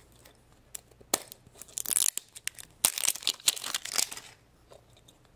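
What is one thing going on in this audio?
Hands rub and scrape against a plastic capsule.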